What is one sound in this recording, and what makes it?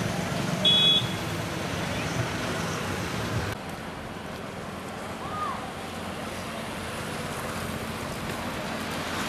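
Motorcycle engines rumble as they pass close by on a street.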